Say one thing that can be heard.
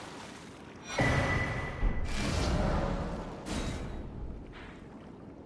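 A soft chime rings as an item is picked up.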